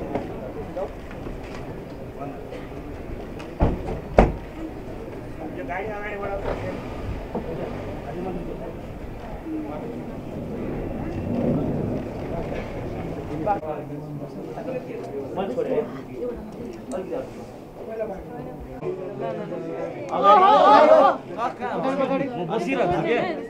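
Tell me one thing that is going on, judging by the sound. A crowd of men and women chatters close by.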